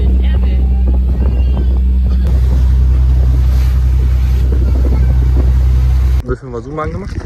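A boat engine rumbles loudly and steadily.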